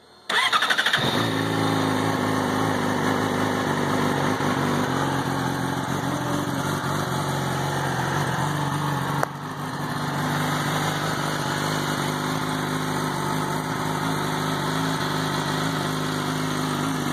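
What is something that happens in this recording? A motorcycle engine idles with a steady, deep rumble.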